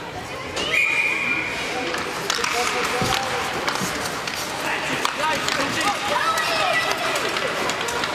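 Ice skates scrape and carve across an ice rink.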